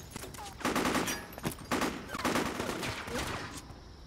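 Bullets strike and ricochet off metal.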